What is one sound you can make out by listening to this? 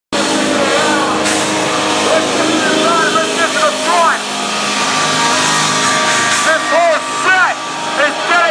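A man shouts loudly into a microphone over a loudspeaker.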